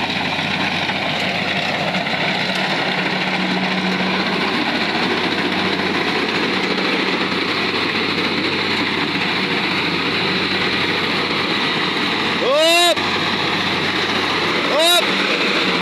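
A combine harvester engine drones steadily close by.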